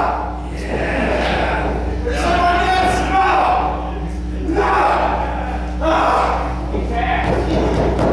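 A referee slaps a hand on a ring mat.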